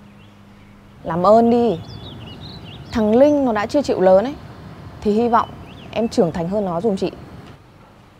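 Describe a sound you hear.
A young woman speaks emotionally and close by, her voice rising and falling.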